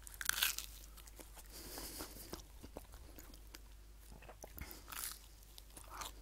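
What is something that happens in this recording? A man chews and eats food close to a microphone.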